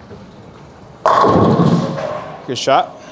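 A bowling ball rumbles down a wooden lane.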